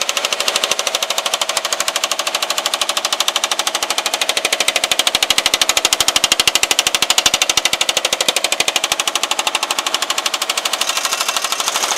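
A power hammer pounds sheet metal in rapid, steady blows.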